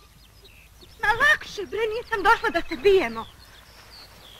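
A man calls out loudly and urgently nearby.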